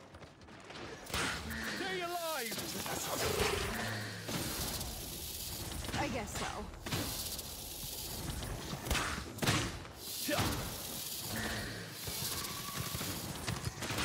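Game weapons fire and zap with sharp bursts.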